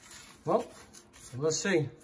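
A hand stirs through dry grains with a faint scratching.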